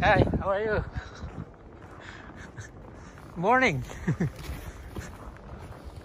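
A snow shovel scrapes over snow and pavement.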